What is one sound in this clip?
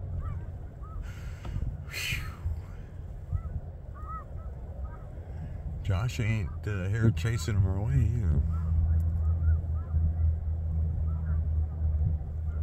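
Geese honk and call from a distance.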